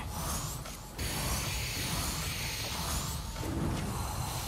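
A magical spell hums and crackles.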